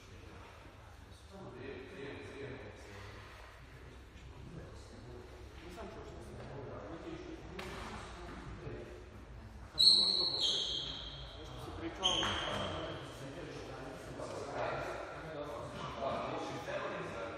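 Young men talk casually nearby in a large echoing hall.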